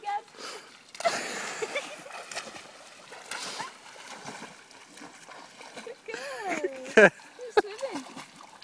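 A dog paddles and splashes while swimming.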